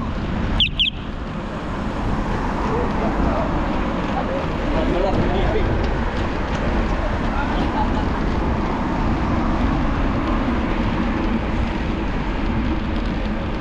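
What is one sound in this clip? Car traffic passes by on a nearby road.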